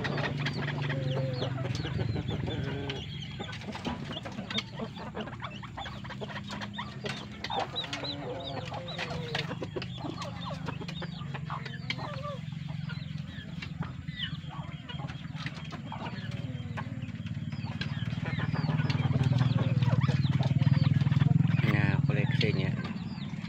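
Chickens cluck and squawk nearby.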